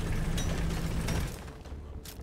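Heavy guns fire a loud, rumbling burst that stops abruptly.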